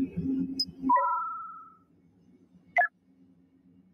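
Short electronic menu chimes sound.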